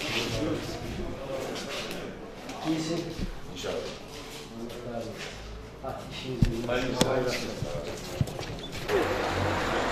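Several men talk with each other nearby.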